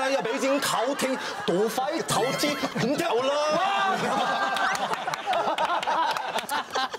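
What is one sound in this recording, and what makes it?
Men laugh loudly.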